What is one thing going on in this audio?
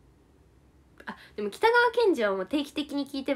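A young woman speaks brightly and close to the microphone.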